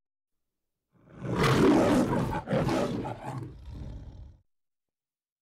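A lion roars loudly twice.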